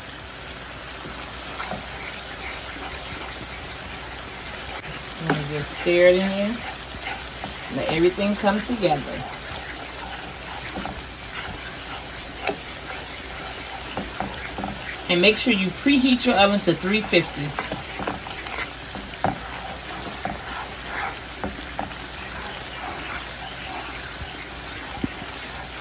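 Food bubbles and sizzles gently in a pan.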